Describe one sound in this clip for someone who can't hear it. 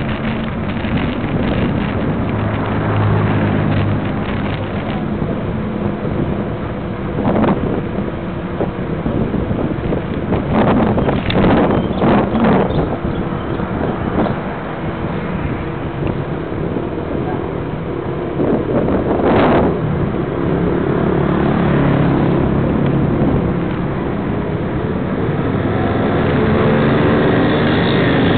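Tyres roll steadily over smooth pavement.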